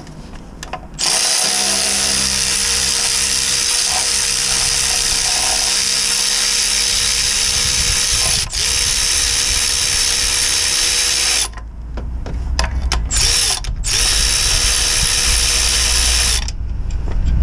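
A pneumatic ratchet whirs loudly in long bursts.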